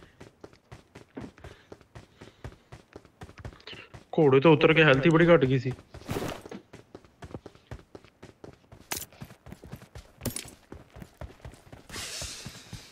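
Footsteps thud quickly and steadily on dirt.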